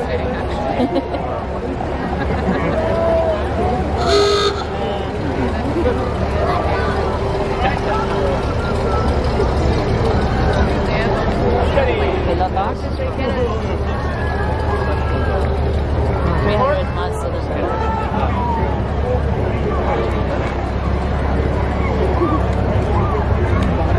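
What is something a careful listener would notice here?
A large crowd chatters and calls out outdoors.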